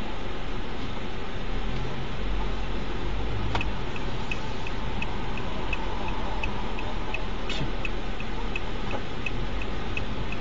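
A car engine hums steadily as tyres roll on the road.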